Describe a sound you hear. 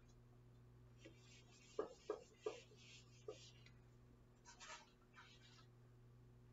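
An eraser wipes across a whiteboard.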